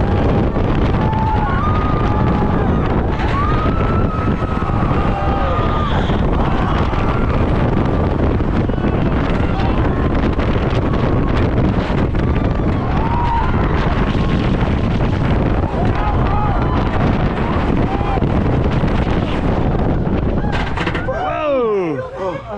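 Wind roars loudly.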